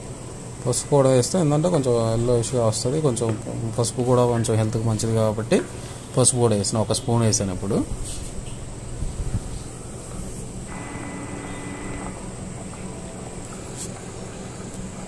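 Water bubbles and simmers in a pot.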